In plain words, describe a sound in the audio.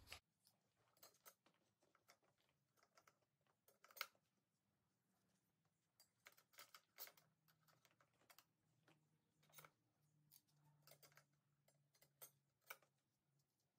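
Metal clutch plates clink softly as they are handled.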